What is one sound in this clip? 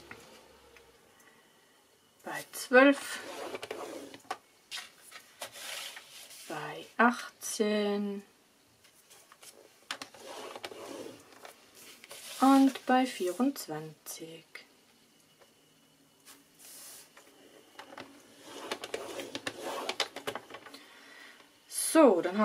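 Sheets of paper rustle and slide on a hard surface.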